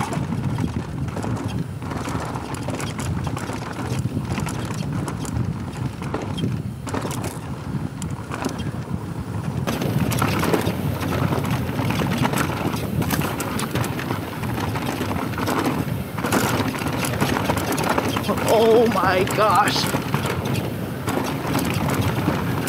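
Wind rumbles against a microphone.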